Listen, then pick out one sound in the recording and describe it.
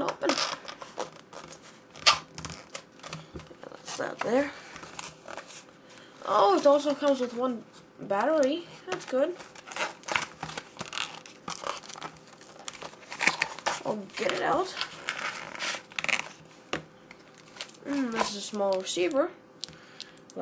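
Cardboard rustles and scrapes as a box is handled up close.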